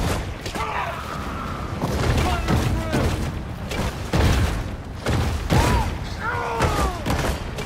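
Water splashes as a creature thrashes through a river.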